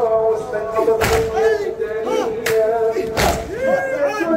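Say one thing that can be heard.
Men beat their chests in unison with heavy thumps.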